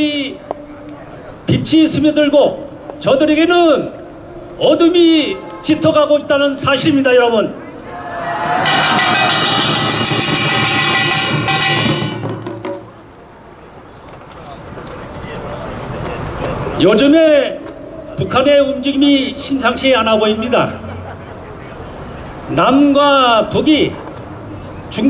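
A man speaks forcefully into a microphone over loudspeakers outdoors.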